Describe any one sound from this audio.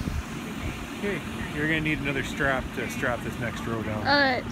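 A young man speaks calmly outdoors in wind.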